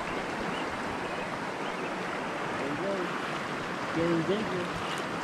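A shallow stream ripples and gurgles steadily over stones close by.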